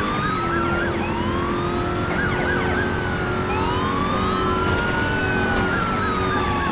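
A car engine roars, rising in pitch through each gear and dropping at every shift.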